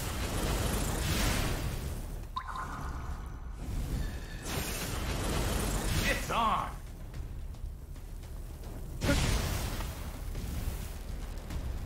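Magical energy blasts whoosh and crackle.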